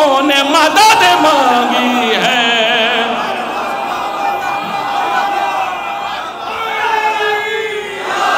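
A crowd of men and women sings together, amplified through loudspeakers in a large echoing hall.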